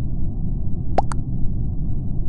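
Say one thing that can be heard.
A short electronic chime sounds as a vote is cast.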